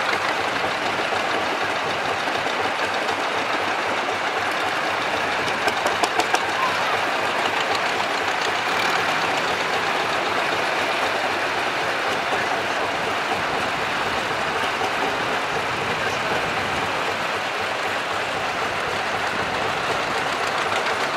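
Old tractor engines chug and putter steadily outdoors.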